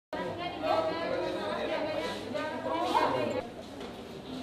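Men and women chatter in an echoing hall.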